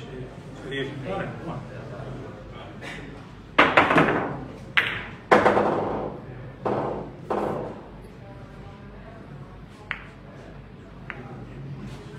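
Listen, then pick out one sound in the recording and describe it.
Billiard balls click against each other and the cushions.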